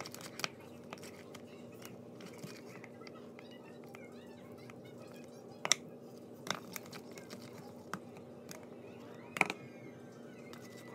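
Soft slime squishes and stretches between fingers.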